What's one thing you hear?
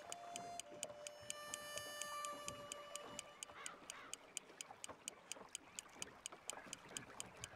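A fishing reel ticks steadily as line is wound in.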